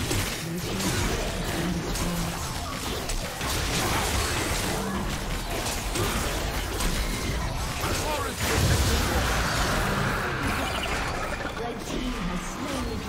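Fighting sound effects clash and whoosh in a fast game battle.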